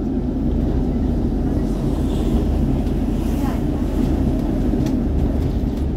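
Tree branches scrape against the bus windows.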